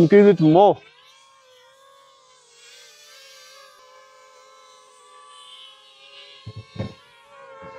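A young man speaks close to a microphone.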